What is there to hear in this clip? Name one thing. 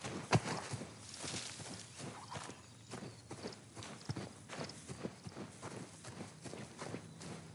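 Leafy plants rustle as someone brushes past.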